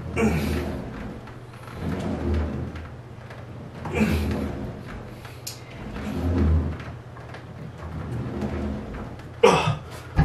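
An exercise wheel rolls back and forth across a wooden floor.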